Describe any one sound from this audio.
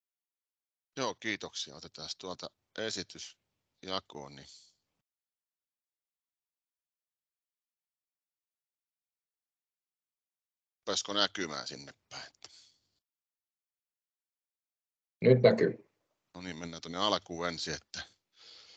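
An older man speaks calmly over an online call, in short phrases.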